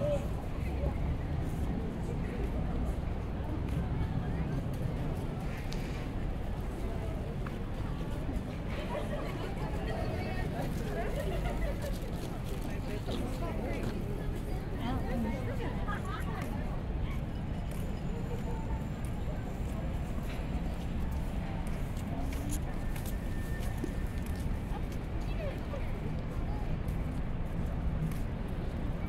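Footsteps shuffle on paving stones.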